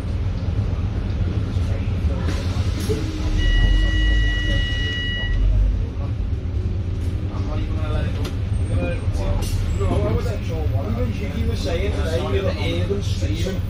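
Traffic hums along a city street.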